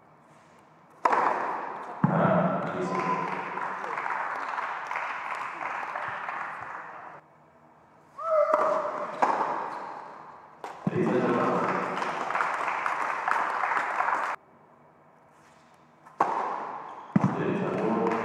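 A tennis ball is struck hard with a racket, with sharp pops echoing in a large hall.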